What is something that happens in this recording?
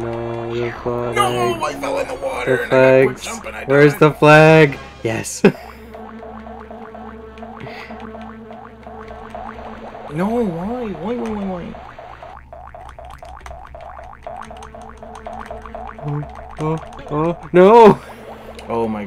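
Cartoonish game sound effects chirp and wobble in pitch.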